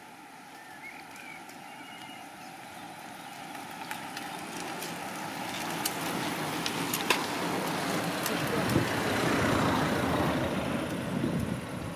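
A pack of bicycles whirs past on a road.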